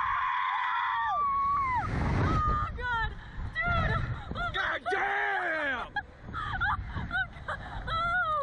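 A young woman screams and laughs loudly up close.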